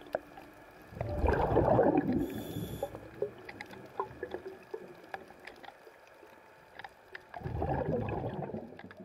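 Bubbles rush and rumble in bursts, heard from underwater.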